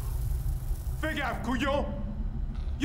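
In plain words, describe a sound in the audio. A man sings close by.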